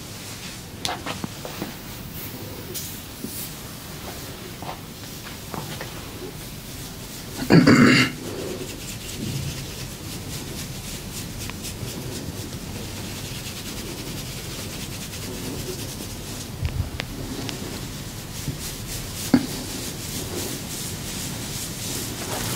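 Fingers rustle and scratch through hair up close.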